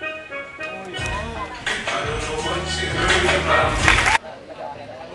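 An audience cheers and applauds loudly.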